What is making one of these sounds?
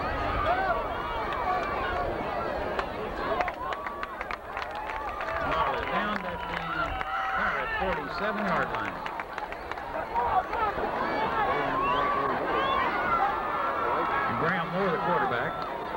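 A large crowd chatters and calls out in a big open stadium.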